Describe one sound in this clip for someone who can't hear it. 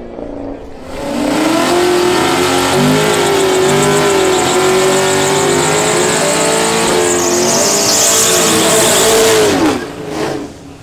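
A powerful car engine revs loudly up close.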